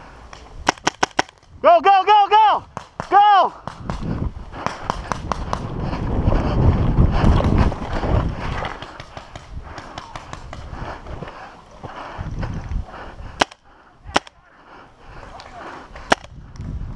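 A paintball gun fires several quick shots.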